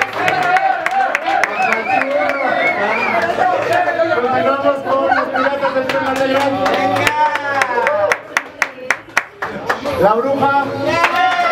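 A crowd of people talk and call out loudly nearby.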